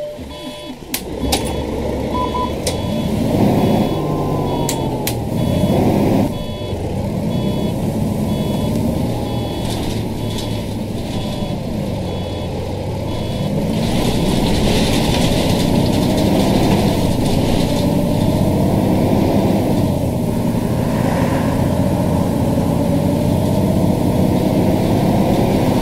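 A bus engine hums and rumbles steadily, rising in pitch as it pulls away.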